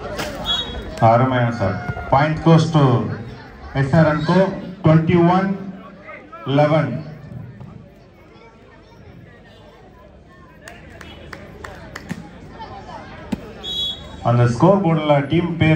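Young men on the court shout loudly to one another.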